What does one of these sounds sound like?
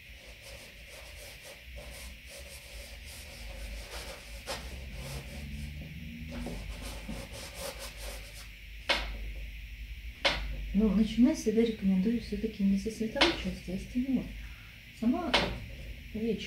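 A brush scrapes softly against canvas.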